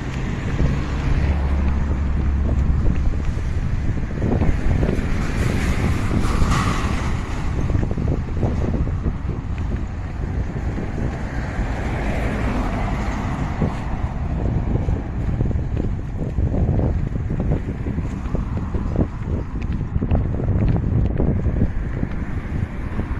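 Wind rumbles heavily against the microphone outdoors.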